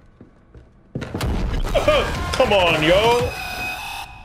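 A man shouts in fright close to a microphone.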